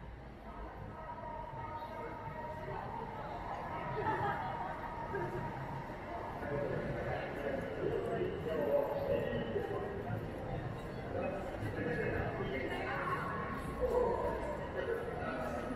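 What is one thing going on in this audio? A crowd murmurs with indistinct chatter outdoors.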